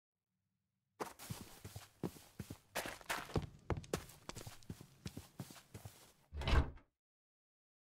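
Footsteps crunch quickly over snowy ground and wooden boards.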